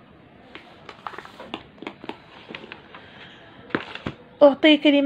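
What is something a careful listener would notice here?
Paper pages rustle and crinkle as a page is turned.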